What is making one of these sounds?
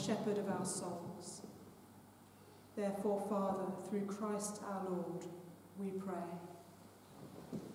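A woman chants in a calm, sung voice, echoing around her.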